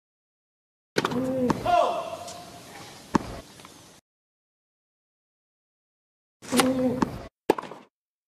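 A tennis ball is struck with a racket.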